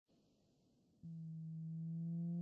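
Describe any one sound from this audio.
Trumpets play a steady, held note.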